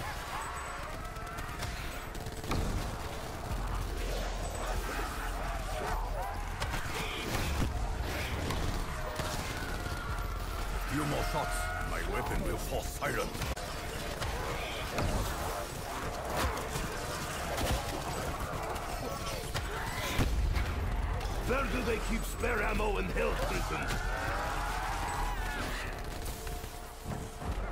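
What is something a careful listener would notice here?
An electric weapon crackles and buzzes.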